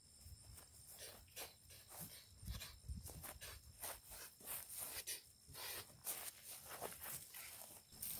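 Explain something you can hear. Footsteps shuffle on dirt.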